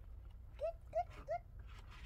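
Water pours from a jug into a pot.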